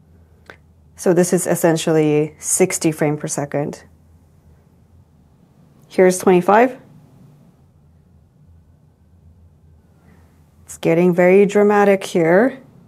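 A young woman speaks calmly and close by, in short bursts.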